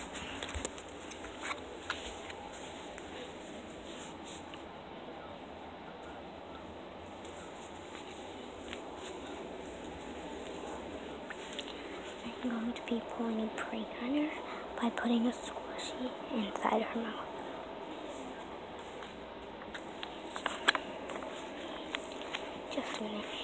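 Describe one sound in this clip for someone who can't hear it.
A foil wrapper crinkles close by.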